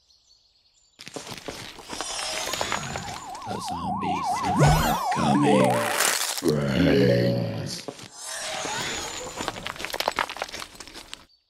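Upbeat electronic game music plays.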